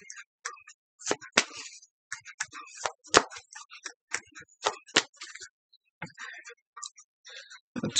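Playing cards tap and rustle as a deck is shuffled by hand.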